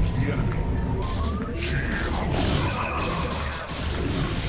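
Electronic zaps and blasts of a video game battle crackle.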